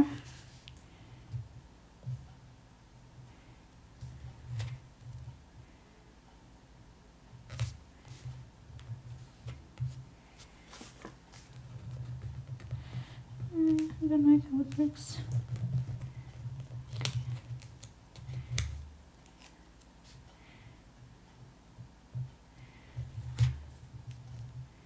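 Paper stickers rustle and crinkle as fingers press them onto a page.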